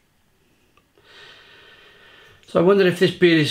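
Beer pours into a glass with a gentle gurgle and fizz.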